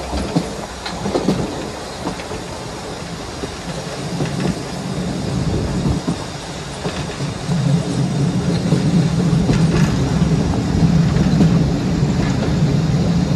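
Train wheels click and clatter on the rails.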